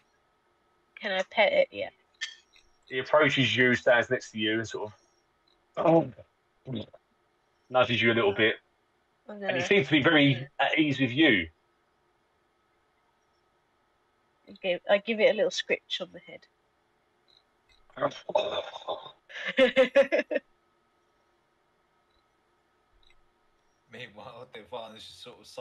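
A man speaks calmly through an online call microphone.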